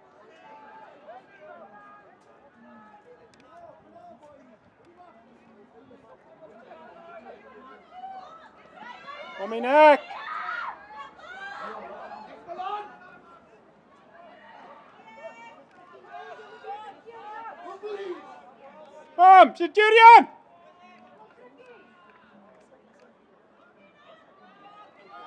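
Young men call out and shout across an open field.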